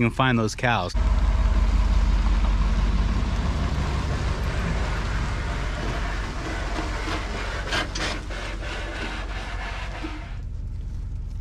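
A pickup truck engine rumbles and pulls away.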